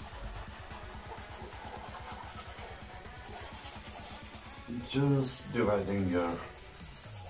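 A brush scrapes softly on canvas.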